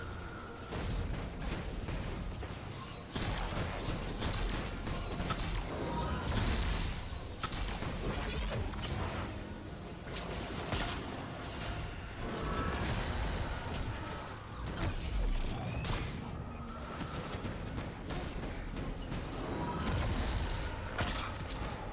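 Gunfire bursts and cracks in rapid shots.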